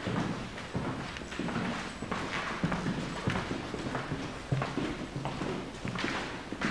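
Footsteps thud on a wooden floor in a room with some echo.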